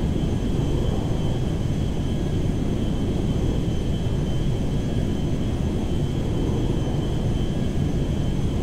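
Jet engines roar steadily as a large airliner flies.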